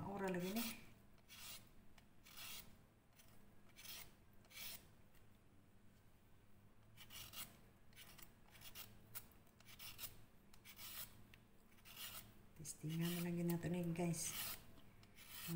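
A peeler scrapes along a carrot in quick repeated strokes.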